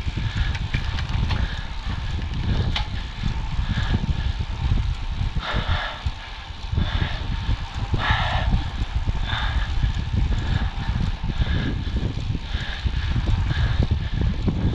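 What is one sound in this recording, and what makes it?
A bicycle freewheel ticks and whirs.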